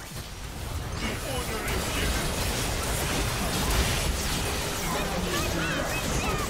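Magic spell effects whoosh and crackle in a fast fight.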